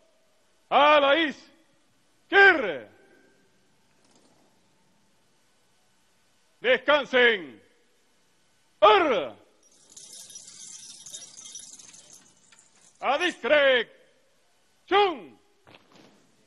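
Men shout short, loud greetings one at a time, each followed by a pause.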